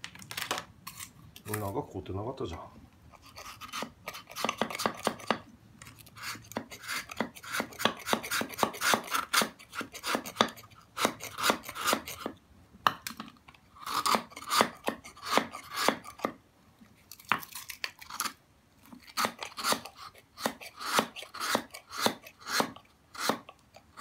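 A knife knocks sharply against a wooden block.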